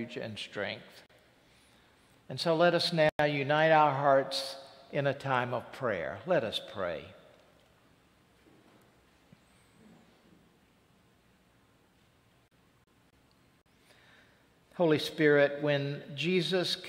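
An elderly man speaks calmly through a microphone in a large echoing hall, pausing between phrases.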